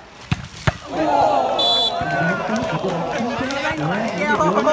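A crowd of young men cheers loudly.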